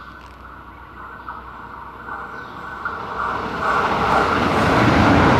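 A train approaches along the tracks, its rumble growing louder.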